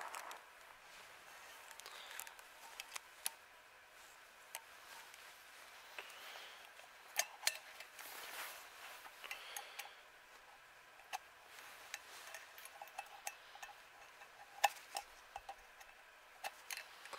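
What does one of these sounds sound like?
Nylon fabric rustles.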